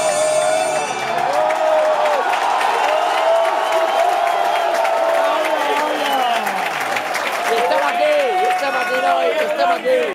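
A large stadium crowd sings loudly together, echoing around the stands.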